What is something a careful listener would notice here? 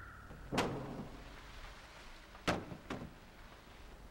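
A wooden crate scrapes along the ground as it is pushed.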